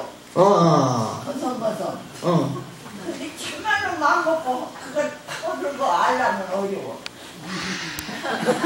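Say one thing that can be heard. An elderly woman speaks with feeling into a microphone.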